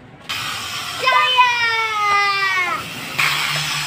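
A young child laughs and shrieks excitedly.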